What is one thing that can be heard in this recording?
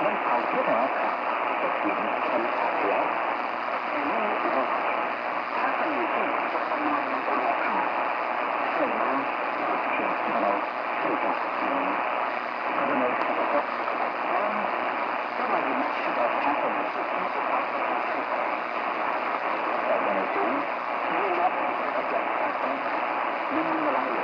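A shortwave radio hisses and crackles steadily with a weak broadcast signal.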